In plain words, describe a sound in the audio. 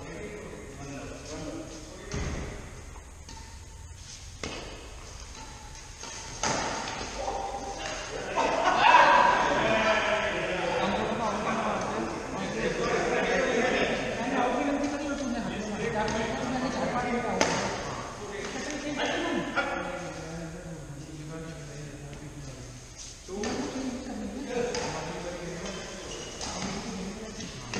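Badminton rackets hit a shuttlecock in a large echoing hall.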